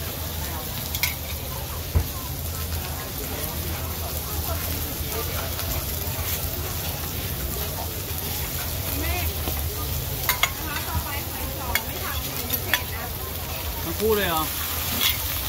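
Metal spatulas clink and scrape against a griddle.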